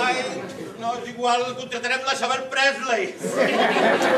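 A group of men and women sing together.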